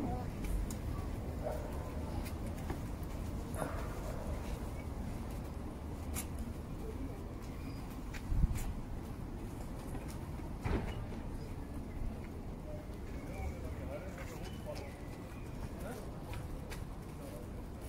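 Small footsteps patter on stone paving.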